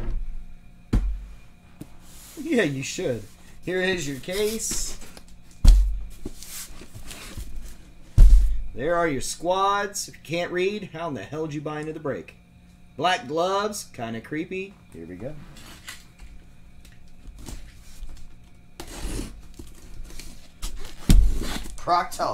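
A cardboard box thumps and rustles as it is handled.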